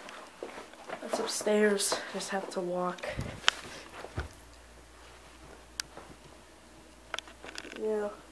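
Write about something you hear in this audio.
Footsteps thud softly on carpeted stairs.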